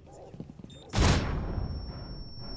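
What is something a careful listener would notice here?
A loud blast goes off nearby.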